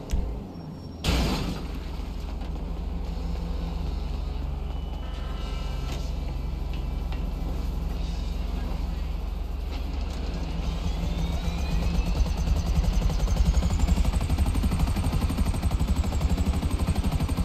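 A helicopter's rotor thumps steadily and grows louder as it takes off.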